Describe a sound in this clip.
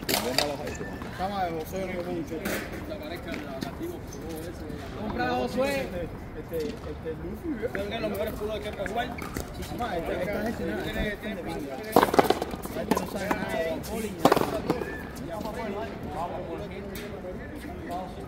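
Young men talk and call out to each other in an echoing space.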